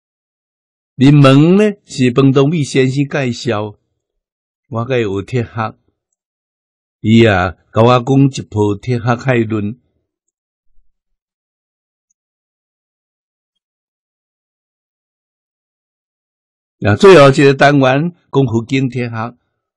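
An elderly man speaks calmly and slowly into a nearby microphone, pausing often.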